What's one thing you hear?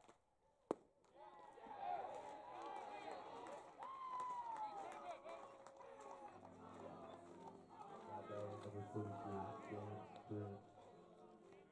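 Players call out and cheer across an open field.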